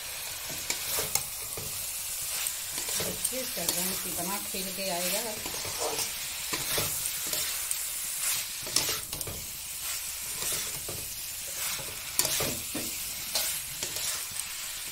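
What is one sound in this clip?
Vegetables sizzle and fry in a hot pan.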